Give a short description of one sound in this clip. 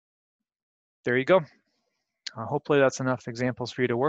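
A man speaks calmly through a computer microphone.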